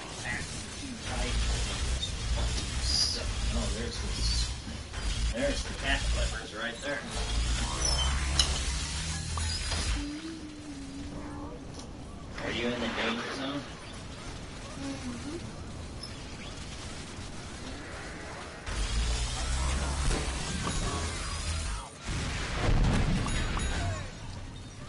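A video game laser gun fires with loud buzzing zaps.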